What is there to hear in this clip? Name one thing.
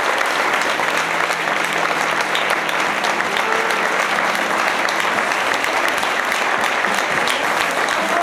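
An audience applauds steadily in a large hall.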